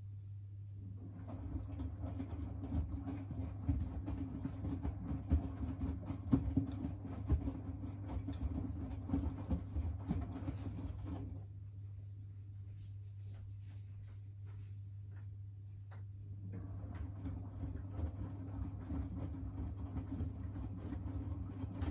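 Wet laundry tumbles and sloshes in a washing machine drum.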